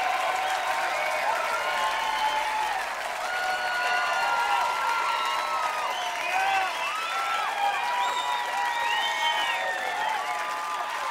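People in a crowd whistle loudly.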